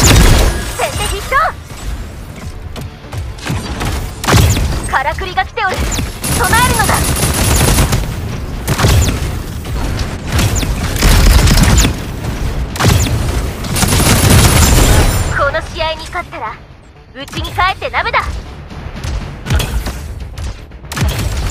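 A robot fires bursts of shots.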